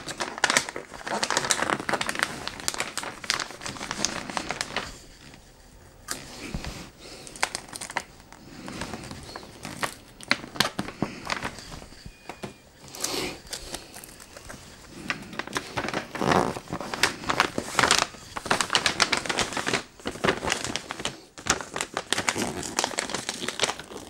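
Wrapping paper crinkles and rustles as hands tear at it.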